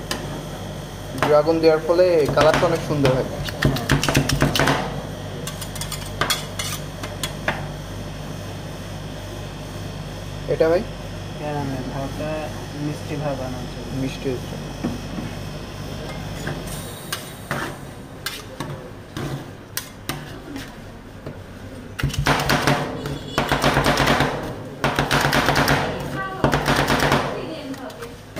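Metal spatulas scrape and tap against a metal plate.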